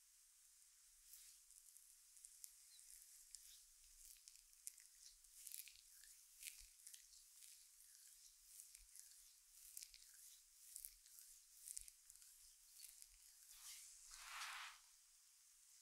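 Hands rub and knead bare skin with soft, dry swishing.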